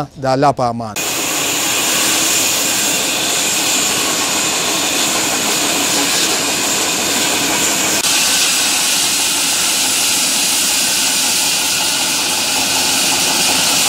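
A band saw whines steadily as it cuts through a wooden log.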